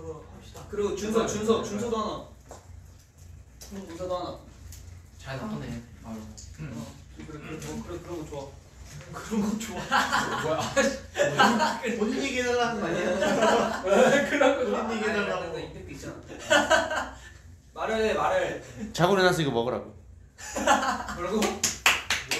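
Several young men talk and joke with animation close to a microphone.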